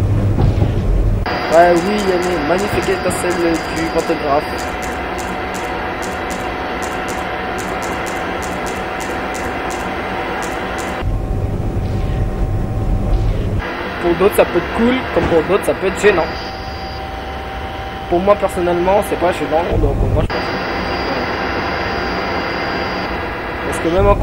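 An electric train's motor hums steadily as it rolls along the rails.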